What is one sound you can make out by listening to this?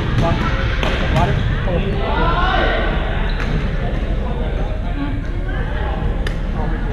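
Badminton rackets smack a shuttlecock in a large echoing gym.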